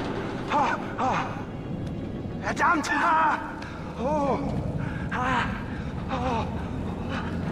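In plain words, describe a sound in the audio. A man grunts and strains with effort.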